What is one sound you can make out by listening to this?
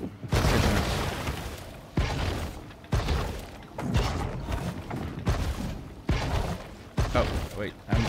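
Water splashes loudly in bursts.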